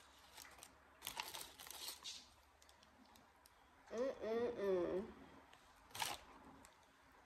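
A paper wrapper crinkles.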